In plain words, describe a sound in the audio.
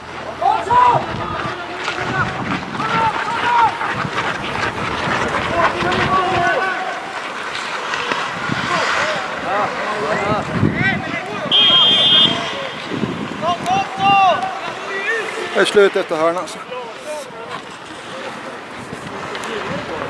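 Skates scrape and hiss on the ice.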